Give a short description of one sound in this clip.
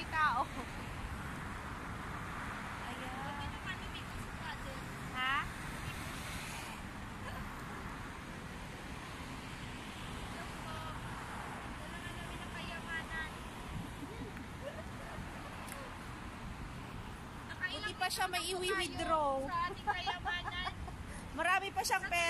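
A woman talks close by, with animation.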